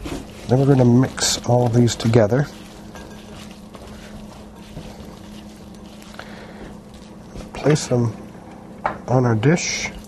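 Hands squish and toss vegetables.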